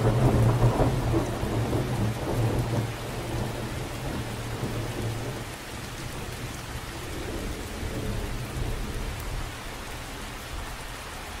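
Rain patters steadily on the surface of a lake.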